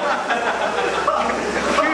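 A swimmer splashes through the water.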